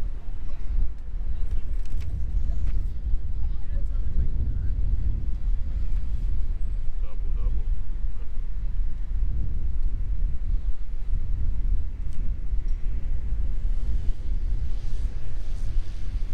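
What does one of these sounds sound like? A young woman talks calmly at a distance.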